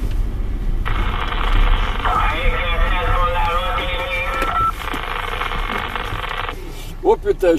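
A CB radio hisses with static through its loudspeaker.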